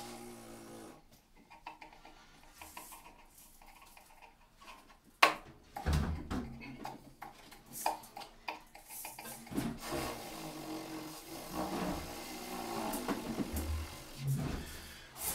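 A drummer taps cymbals and drums.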